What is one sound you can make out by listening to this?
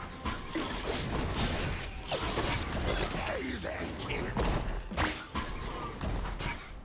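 Magical spell effects whoosh and crackle during a fast game fight.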